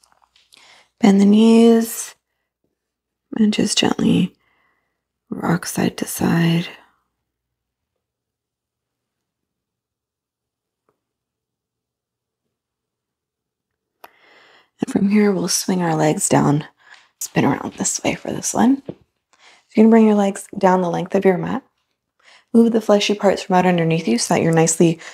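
A woman speaks calmly and slowly, close to a microphone.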